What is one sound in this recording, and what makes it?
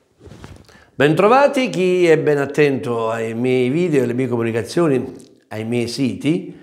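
A middle-aged man speaks with animation into a clip-on microphone, close by.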